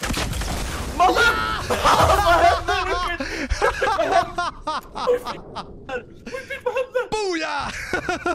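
A man shouts and cheers excitedly into a microphone.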